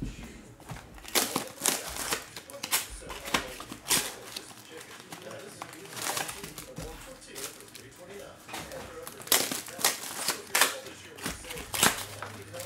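Foil card packs rustle and crackle in hands.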